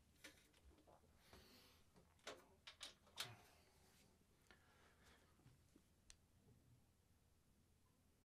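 Clothing rustles close by.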